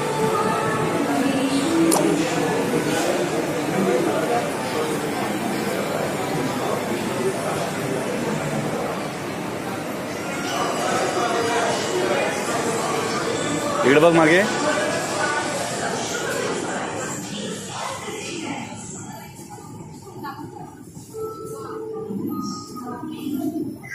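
An escalator hums and rattles steadily in an echoing hall.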